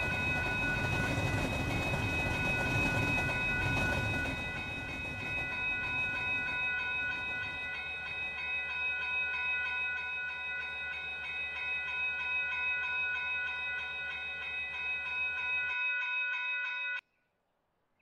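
A railway crossing bell rings rapidly.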